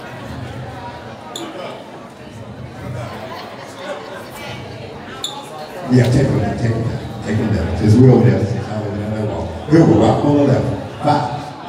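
A young man raps loudly into a microphone in an echoing hall.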